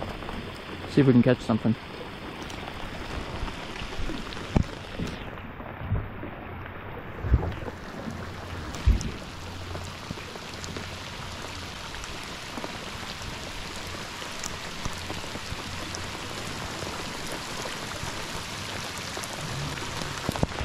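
Rain patters steadily on a lake's surface.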